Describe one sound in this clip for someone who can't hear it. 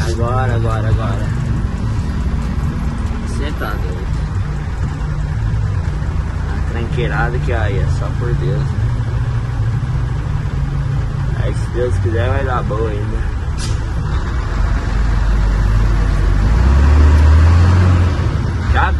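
A truck's diesel engine rumbles steadily from inside the cab, growing louder near the end.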